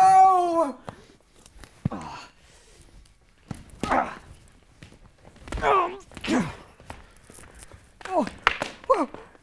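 Plastic toy swords clack and whack against each other.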